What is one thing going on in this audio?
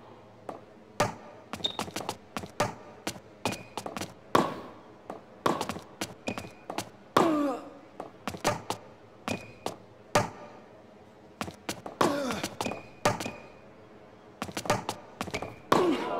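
Tennis players grunt with effort as they hit the ball.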